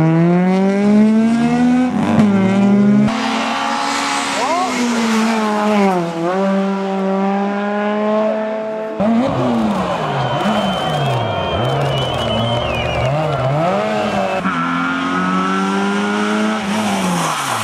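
Rally car engines roar loudly and rev up and down as they race past.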